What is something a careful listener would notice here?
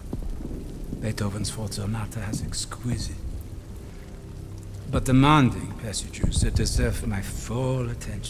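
A man speaks calmly and slowly.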